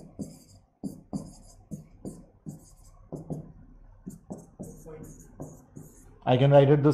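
A pen taps on a board in quick strokes.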